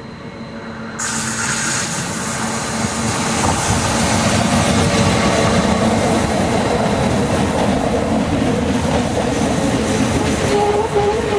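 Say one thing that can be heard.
Train wheels rumble and clatter over the rails close by.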